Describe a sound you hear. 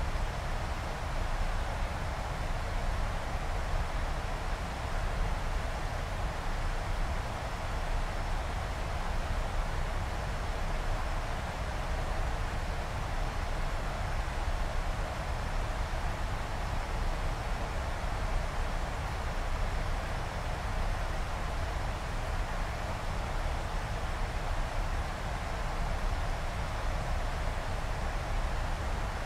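Wind rushes steadily past an aircraft cockpit.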